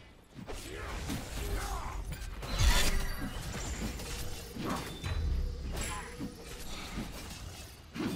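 Video game combat effects whoosh and crash.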